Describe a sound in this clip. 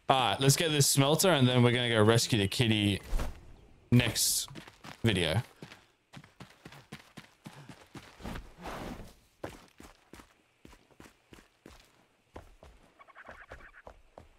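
Footsteps crunch on dirt and stone.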